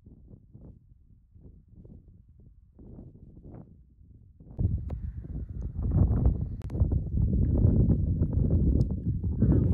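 Wind rumbles and gusts outdoors, growing much louder partway through.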